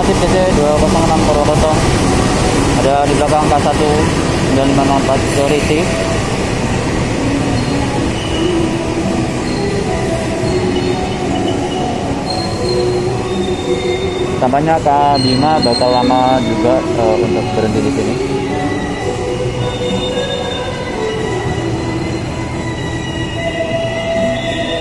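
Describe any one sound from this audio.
A train rumbles steadily as it rolls slowly along.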